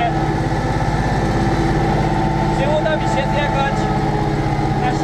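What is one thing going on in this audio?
A tractor engine drones steadily and loudly from inside the cab.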